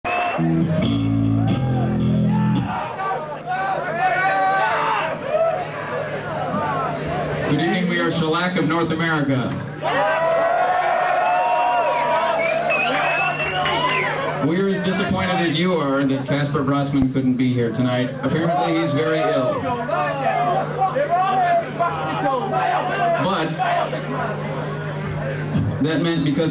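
A man sings loudly into a microphone over a loudspeaker, echoing in a large hall.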